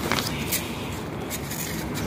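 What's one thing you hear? Paper rustles and crinkles under a hand.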